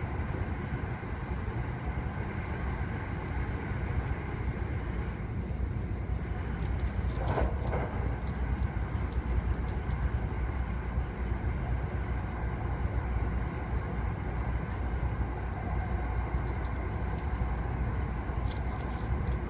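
A train rumbles steadily along an elevated track.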